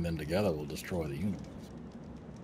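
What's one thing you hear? A man speaks with animation over an online call.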